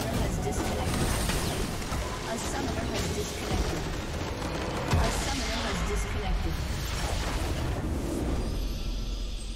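Game spell effects crackle and explode in a loud battle.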